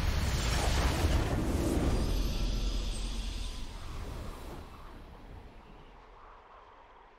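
A triumphant game victory fanfare swells and slowly fades.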